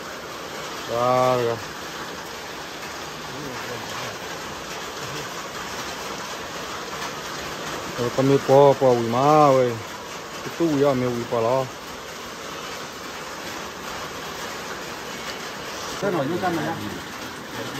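Young men talk casually nearby.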